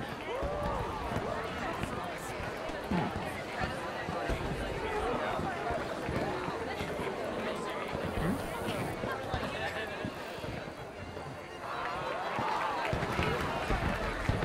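A crowd of men and women chatters and murmurs throughout.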